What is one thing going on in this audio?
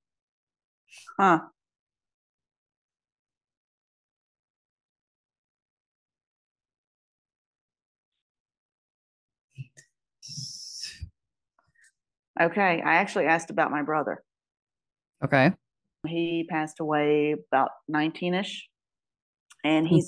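A middle-aged woman speaks through a microphone over an online call.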